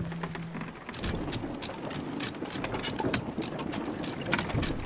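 Ocean waves wash and splash against a wooden ship.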